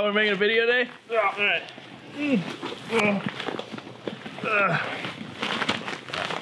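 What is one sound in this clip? Bodies thump and rustle on soft cushions.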